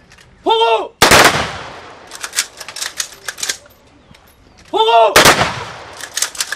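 Soldiers fire a rifle volley together in a loud crack that echoes outdoors.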